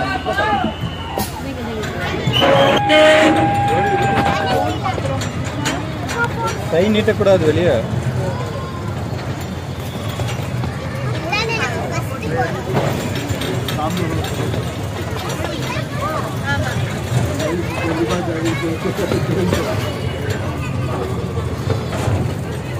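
A small train rumbles steadily along its track.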